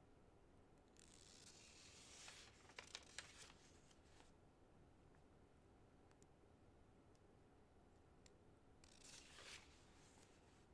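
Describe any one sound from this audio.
A large bird's wings flap in short bursts.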